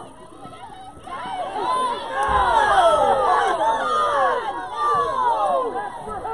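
A crowd of young women cheers and shouts loudly outdoors.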